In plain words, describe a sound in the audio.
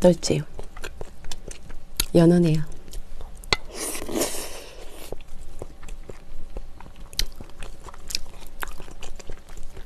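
A young woman chews food wetly and loudly near a microphone.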